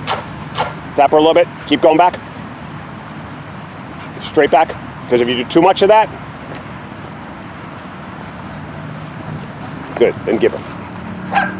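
A man gives short, firm commands to a dog nearby.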